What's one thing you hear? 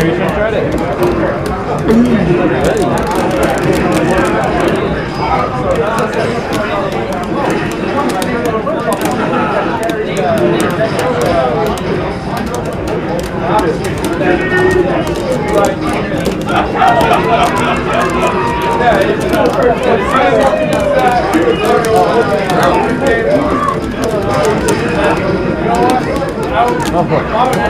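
Fighting game sounds of punches and kicks play from a television speaker.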